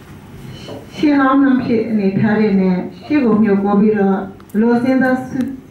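A woman speaks steadily into a microphone, heard through a loudspeaker in a room.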